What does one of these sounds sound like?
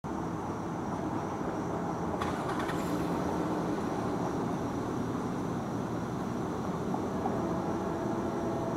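A passenger train locomotive rumbles as it approaches in the distance.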